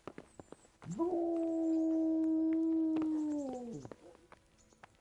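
A wooden door creaks loudly as it swings shut.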